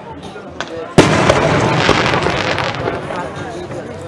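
Firework sparks crackle and fizz.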